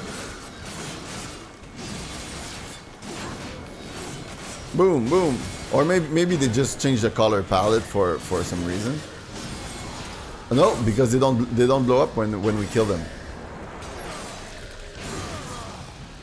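Game combat noises clash and whoosh.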